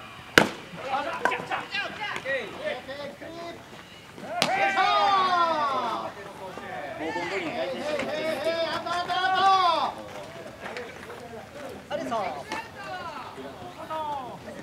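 Young men shout and call out loudly across an open field.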